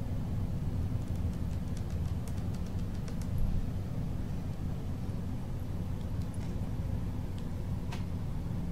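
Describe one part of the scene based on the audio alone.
Burning debris crackles and pops.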